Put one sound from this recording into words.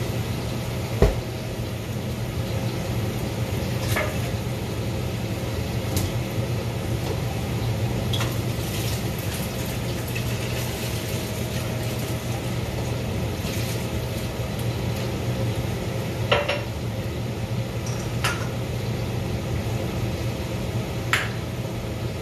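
Boiling water pops now and then.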